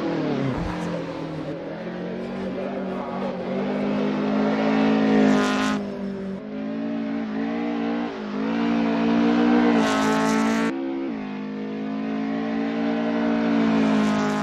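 A car engine revs high, rising and dropping in pitch as it races along.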